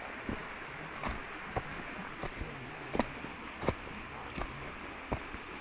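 Footsteps crunch on dry leaves and dirt along a trail.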